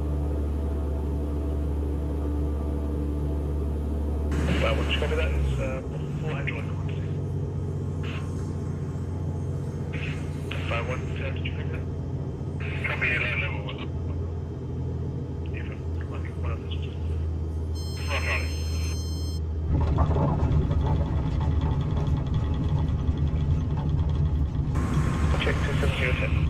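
A small aircraft engine hums steadily.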